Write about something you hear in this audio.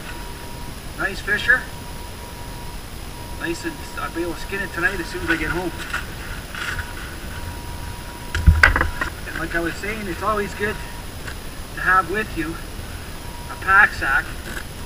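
An elderly man talks calmly nearby, outdoors.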